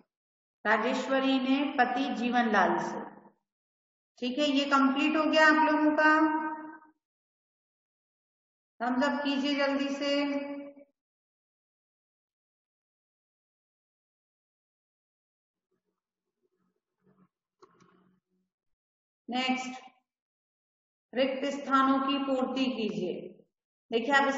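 A woman speaks calmly and clearly over a microphone in an online call, pausing between phrases.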